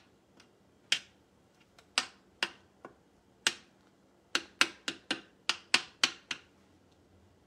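A metal spoon clinks against a saucepan while stirring.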